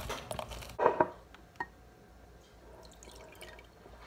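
Juice pours into a glass.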